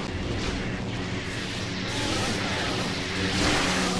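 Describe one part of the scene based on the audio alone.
Lightsabers clash and crackle in a fight.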